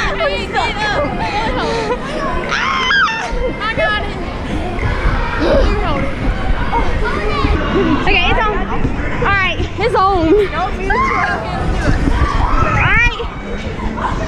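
Young women laugh and squeal nearby.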